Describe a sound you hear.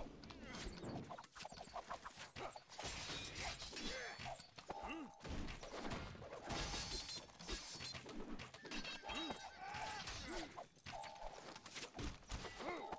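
Swords and weapons clash and clang rapidly in a large battle.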